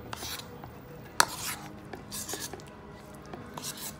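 A thick, wet mixture squelches as it is scraped out.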